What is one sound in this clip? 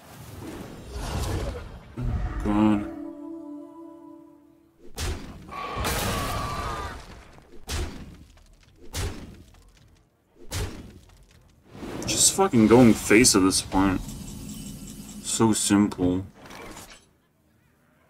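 Magical spell effects whoosh, chime and crash in quick bursts.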